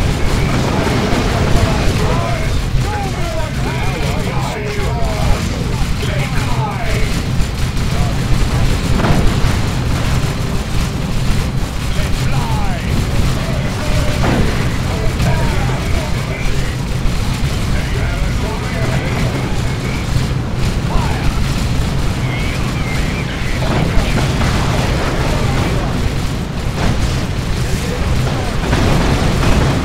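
Explosions boom and rumble again and again.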